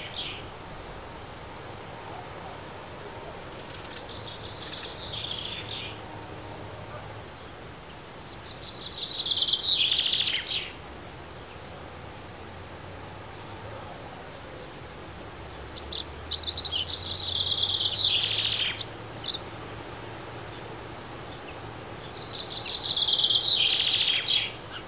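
Sparrows chirp nearby in short bursts.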